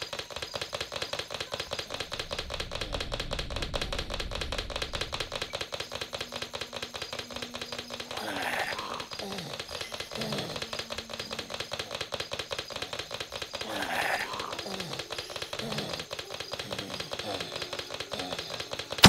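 Footsteps patter quickly and steadily on a hard floor.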